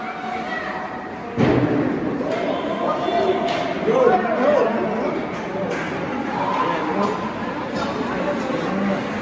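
Skate blades scrape and hiss across the ice in an echoing rink.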